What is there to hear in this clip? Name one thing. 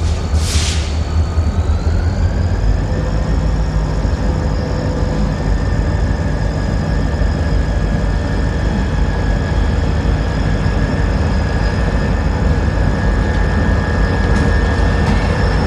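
A diesel locomotive rumbles as it draws closer.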